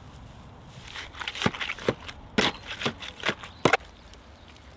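A spade chops into mud mixed with straw.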